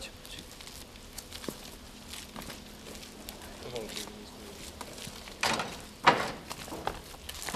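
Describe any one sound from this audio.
Footsteps crunch through dry leaves and brush outdoors.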